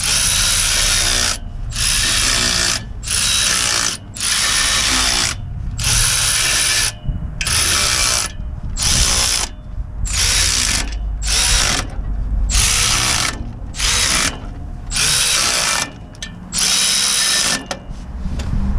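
A cordless ratchet whirs in loud, repeated bursts.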